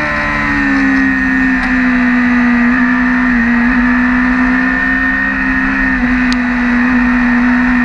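A motorcycle engine drones loudly at high revs, its pitch holding nearly steady.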